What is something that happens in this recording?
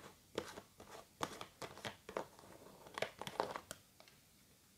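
Fingernails tap and scratch on a plastic jar lid.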